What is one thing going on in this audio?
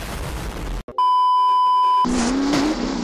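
A steady high test tone beeps.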